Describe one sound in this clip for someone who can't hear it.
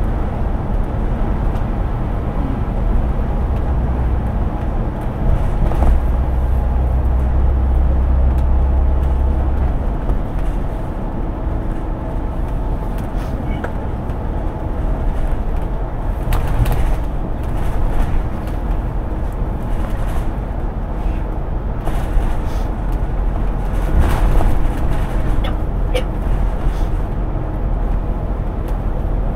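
A bus engine hums and drones steadily.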